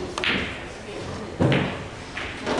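A pool cue strikes a ball with a sharp tap.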